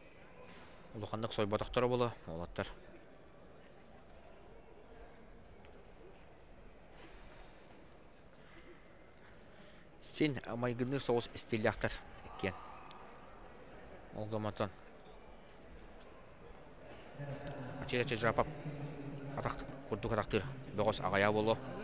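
A man speaks through a loudspeaker in a large echoing hall.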